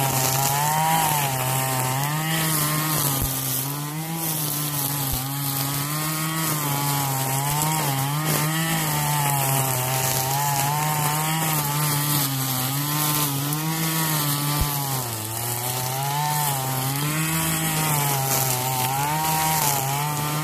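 A petrol string trimmer engine drones steadily, its pitch wavering as it revs.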